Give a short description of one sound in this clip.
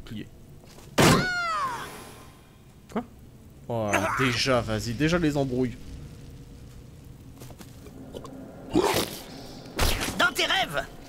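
Game combat sound effects clash and strike.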